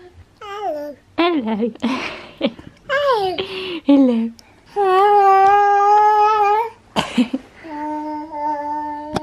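A toddler squeals and babbles excitedly up close.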